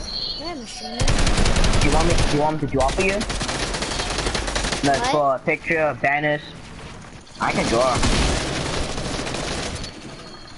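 Rapid clicking and clattering building sounds from a video game.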